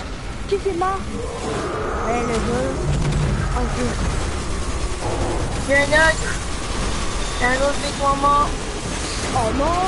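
Rapid gunfire crackles in a busy, noisy fight.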